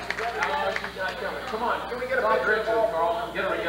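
A man speaks into a microphone, heard over a loudspeaker.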